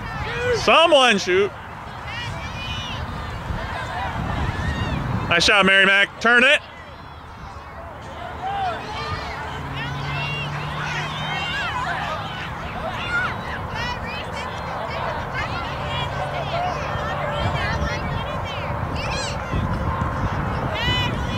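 Young players and spectators call out across an open field.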